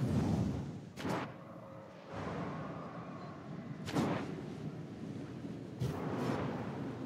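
A sharp whoosh sounds as a rider flies through a glowing ring.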